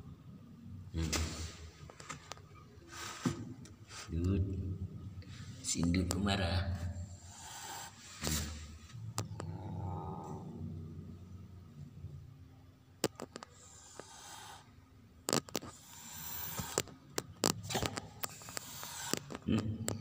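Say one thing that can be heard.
A cat hisses and growls up close.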